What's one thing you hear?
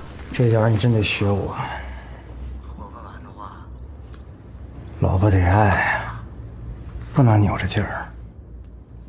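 A young man speaks calmly nearby.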